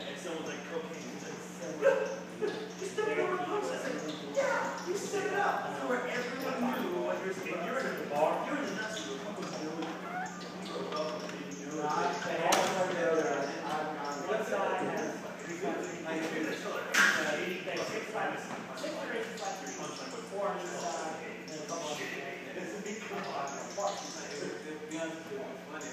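Several men talk casually close by in a room.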